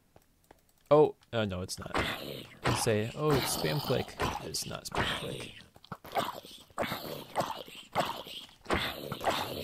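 Zombies groan and grunt close by.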